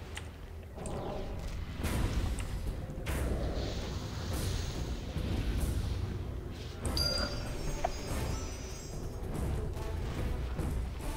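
Weapons clash in a fight.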